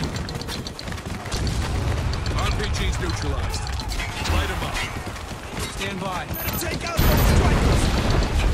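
Rapid cannon fire thuds repeatedly.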